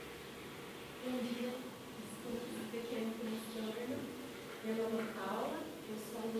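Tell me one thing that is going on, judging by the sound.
A woman speaks to the room, echoing in a large hall.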